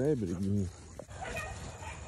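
A dog runs through dry grass, rustling it.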